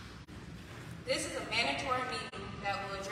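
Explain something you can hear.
A woman speaks into a microphone over a loudspeaker in a large echoing hall.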